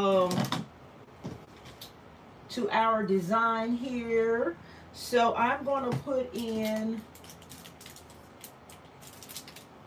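A plastic-wrapped package crinkles as a hand sets it down.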